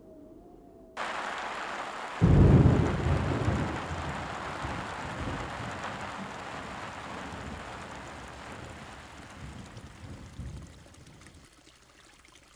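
Heavy rain pours down.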